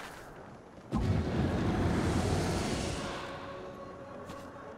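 A magical blast roars and crackles, then fades.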